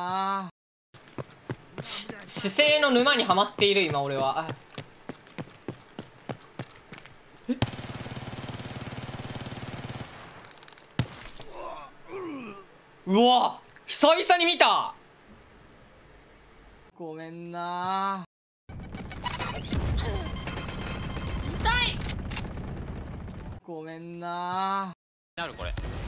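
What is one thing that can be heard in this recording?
A young man talks and exclaims with animation through a microphone.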